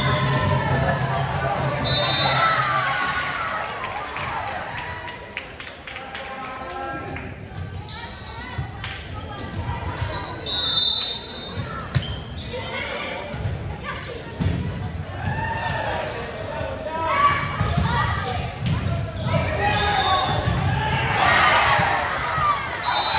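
Young women shout and cheer in a large echoing gym.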